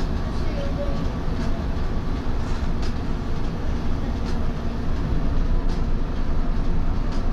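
A train rumbles and hums steadily, heard from inside.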